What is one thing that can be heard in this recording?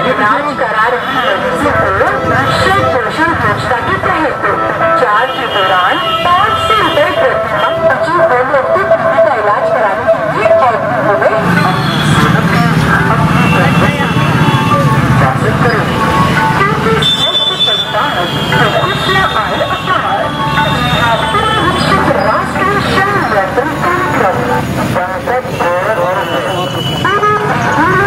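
A crowd of men chatters nearby outdoors.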